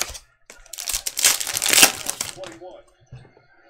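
A foil wrapper crinkles and tears open.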